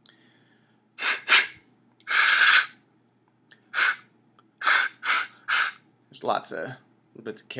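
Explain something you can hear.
A man blows into a carrot flute, playing short high notes.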